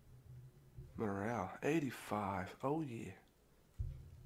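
A man speaks calmly and clearly, close up.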